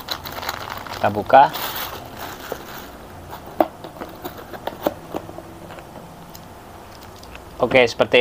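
A cardboard box is opened and handled with dull knocks.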